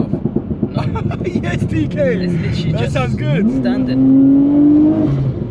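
Two young men laugh from close by.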